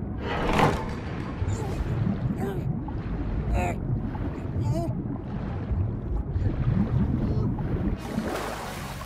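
Water swirls and bubbles, muffled as if heard underwater.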